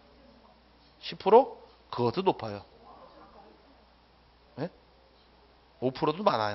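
A middle-aged man speaks calmly into a microphone, in short phrases with pauses.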